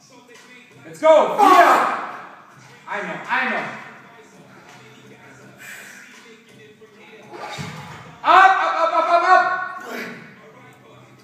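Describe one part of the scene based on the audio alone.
A man grunts and strains loudly with effort.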